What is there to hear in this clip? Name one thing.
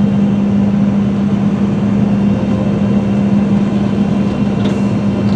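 A combine harvester engine drones loudly and steadily.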